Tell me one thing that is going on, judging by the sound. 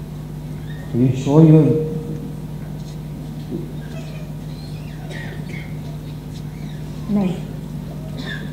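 A woman speaks on a stage.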